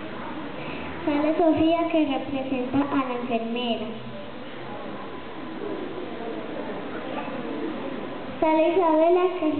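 A young girl speaks through a microphone and loudspeaker in an echoing hall.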